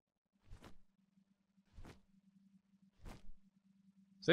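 Large wings beat with soft, regular thumps.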